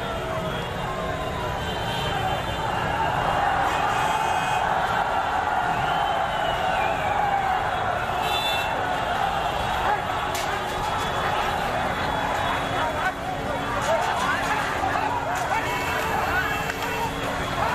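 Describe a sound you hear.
A large crowd shouts and clamours loudly outdoors.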